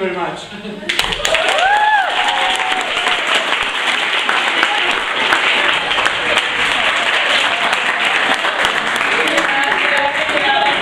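A crowd of young people claps and cheers in a room.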